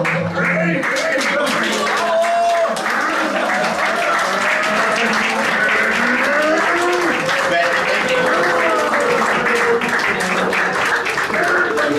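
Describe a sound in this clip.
A crowd of people claps hands in a steady rhythm.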